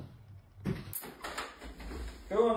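A door handle clicks and rattles.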